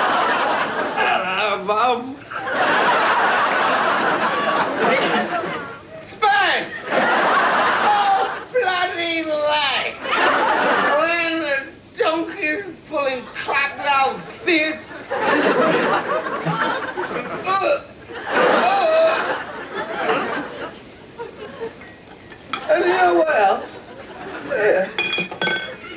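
A middle-aged man speaks close by in a loud, animated, rasping voice.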